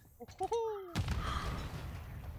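Gunfire cracks from a video game.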